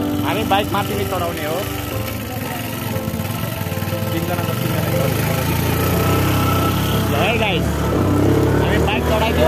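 A motorbike engine hums steadily and grows louder.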